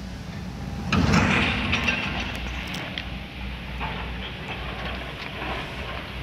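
Train wheels clack and squeal on the rails.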